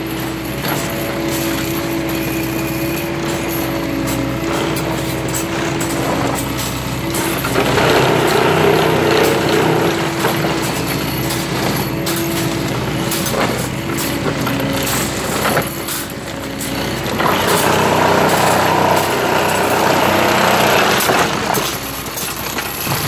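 A track tamping machine's engine drones steadily close by.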